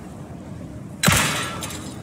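A pistol fires a single shot with a short echo.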